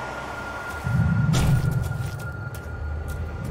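A deep explosion booms and rumbles.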